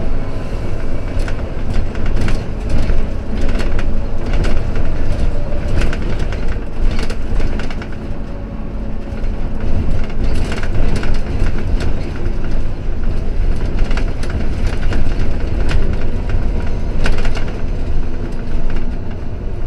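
Tyres rumble and rattle over a rough road.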